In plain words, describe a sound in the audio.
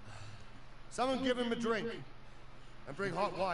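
A man speaks sternly and loudly close by.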